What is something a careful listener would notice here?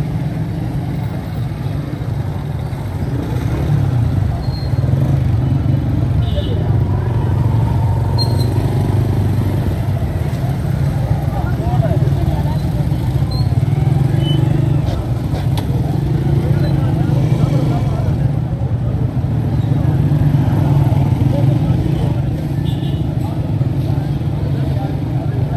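Small motorcycles ride past in busy street traffic.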